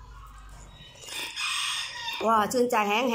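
A woman slurps noodles loudly.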